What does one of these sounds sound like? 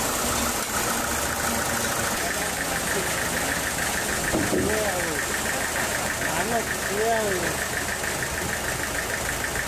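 A large sawing machine whirs and hums steadily.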